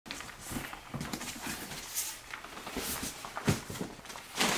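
Cardboard flaps scrape and thud as a box is opened.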